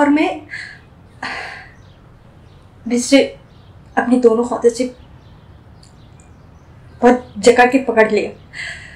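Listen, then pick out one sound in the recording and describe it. A woman talks expressively and close up, in short bursts with pauses.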